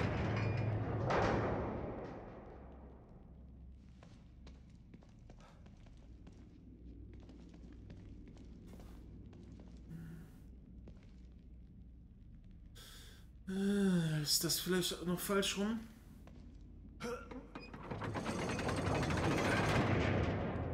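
Heavy chains and gears grind and rumble loudly.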